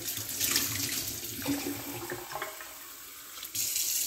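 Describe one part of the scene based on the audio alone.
Water runs from a tap and splashes into a metal cup and sink.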